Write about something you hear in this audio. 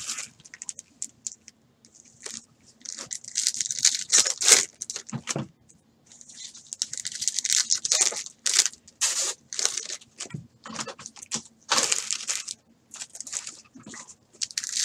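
Foil card wrappers crinkle and rustle as packs are handled and torn open.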